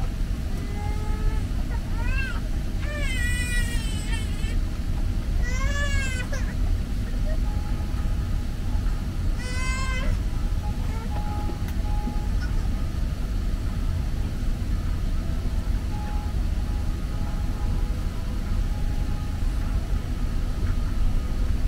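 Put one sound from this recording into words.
An aircraft's engines rumble low and steady, heard from inside the cabin.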